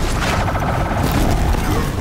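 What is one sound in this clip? A fiery explosion bursts loudly.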